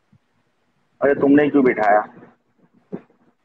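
A man talks briefly through a phone call.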